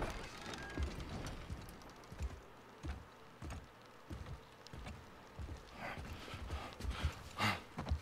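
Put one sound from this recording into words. Heavy footsteps thud slowly on a wooden floor.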